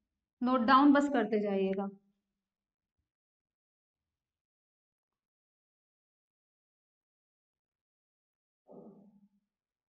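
A young woman speaks clearly into a close microphone.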